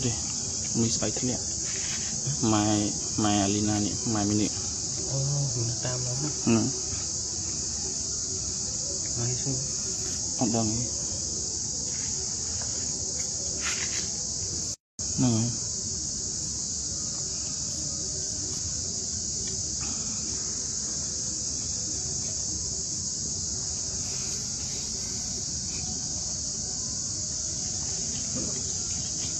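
A monkey crinkles a plastic wrapper.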